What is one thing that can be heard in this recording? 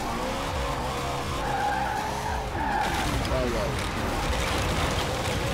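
A game car engine roars at speed.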